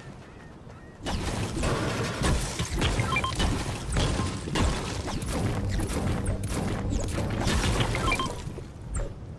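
A pickaxe strikes a wall again and again with sharp thuds and cracks.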